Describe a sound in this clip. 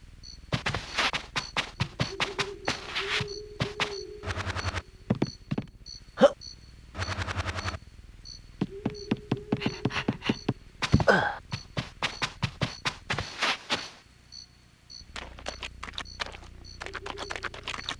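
Small footsteps patter quickly on hard ground.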